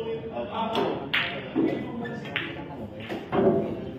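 Billiard balls click against each other.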